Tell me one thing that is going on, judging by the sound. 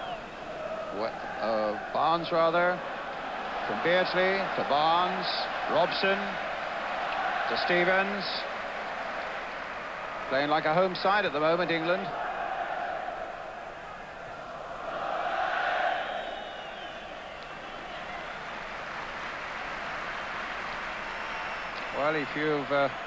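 A large stadium crowd murmurs and roars in the distance.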